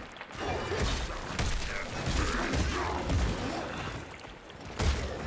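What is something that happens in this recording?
Blades clash and swoosh in a fight.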